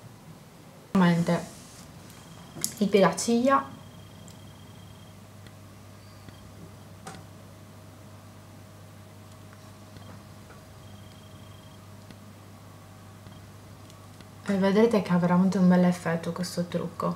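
A young woman speaks calmly, close to the microphone.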